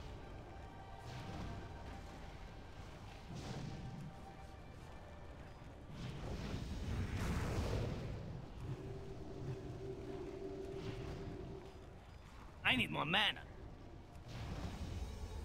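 Magic spells whoosh and boom in a fierce battle.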